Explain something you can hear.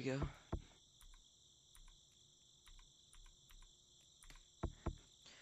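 Keyboard keys click with short, bright blips as they are pressed one at a time.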